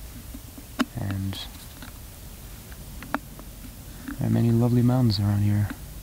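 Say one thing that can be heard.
A man speaks calmly close by, in short phrases.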